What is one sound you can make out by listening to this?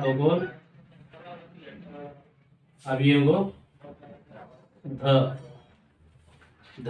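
A man speaks clearly and slowly, explaining, close by.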